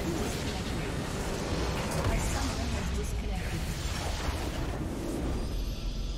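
A base structure explodes with a loud rumbling blast.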